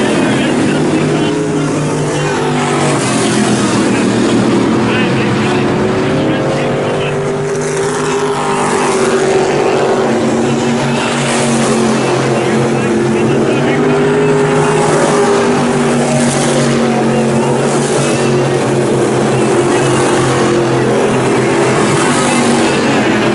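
Race car engines roar loudly around a dirt track outdoors, rising and falling as they pass.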